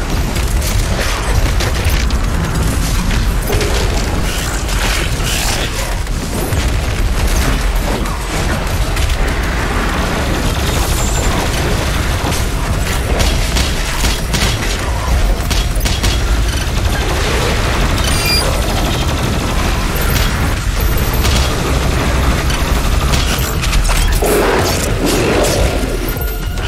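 Monsters roar and growl.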